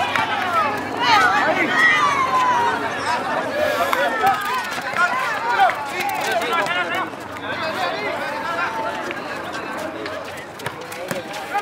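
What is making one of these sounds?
A crowd of young men shouts and cheers loudly outdoors.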